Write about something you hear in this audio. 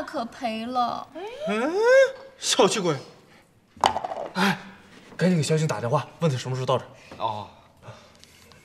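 A young man speaks with animation close by.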